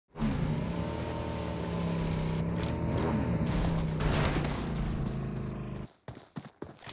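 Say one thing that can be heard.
A motorbike engine roars and revs.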